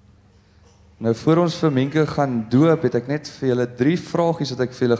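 A man speaks calmly into a microphone through loudspeakers in an echoing hall.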